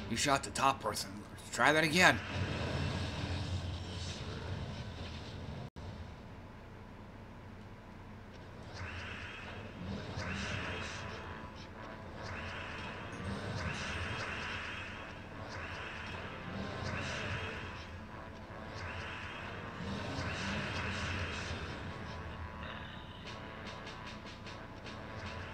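Game sound effects chime and whoosh as gems match.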